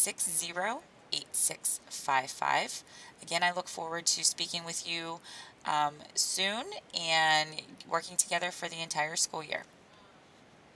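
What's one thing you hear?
A woman speaks with animation, heard close through a headset microphone as if in an online call.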